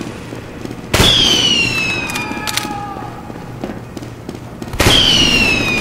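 Heavy blasts boom and echo.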